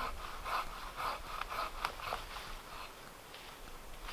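A hand saw rasps faintly in the distance.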